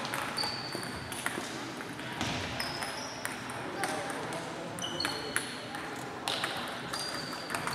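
Table tennis balls click on bats and tables in a large echoing hall.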